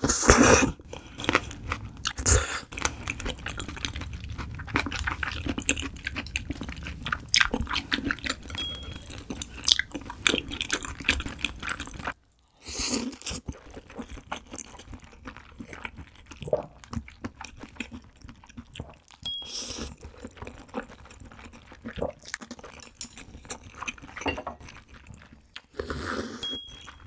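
A young woman chews wet food with soft smacking sounds, close to a microphone.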